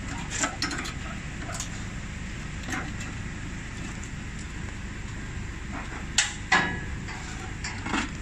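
A metal crank handle clanks and rattles as it is turned.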